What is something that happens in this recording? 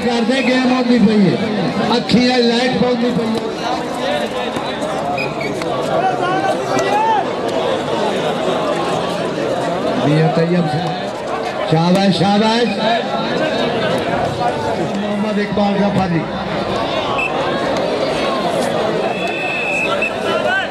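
A large outdoor crowd chatters and cheers.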